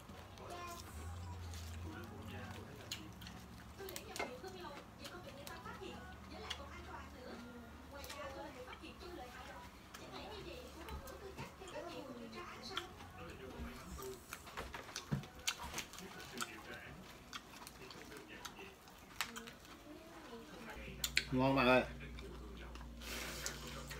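Dishes clink on a table.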